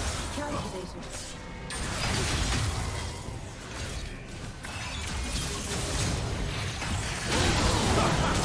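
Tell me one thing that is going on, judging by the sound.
Magic spells whoosh and crackle as game characters clash in battle.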